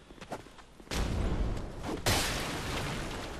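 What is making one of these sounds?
A sword swings with a swish.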